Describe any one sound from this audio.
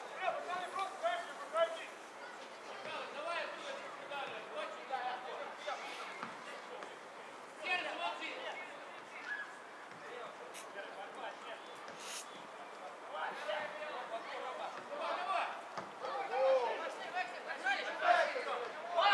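Men shout to one another from across an open outdoor field.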